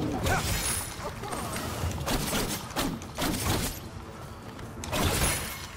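A blade swishes through the air in quick slashes.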